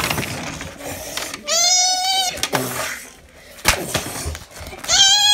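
Plastic toys knock and tap against each other.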